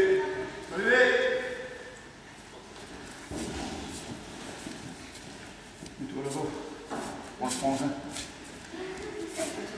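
Children call out and chatter in a large echoing hall.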